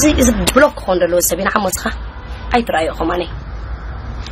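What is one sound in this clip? A young woman speaks with animation close to a phone microphone.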